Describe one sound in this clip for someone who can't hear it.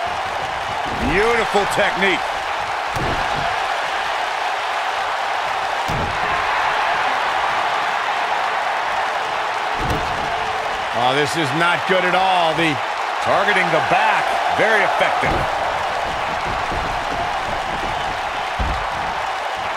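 Heavy bodies thud onto a wrestling mat.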